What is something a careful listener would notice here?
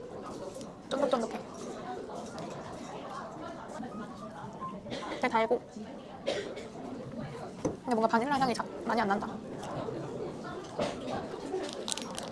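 A young woman chews food with soft crunches.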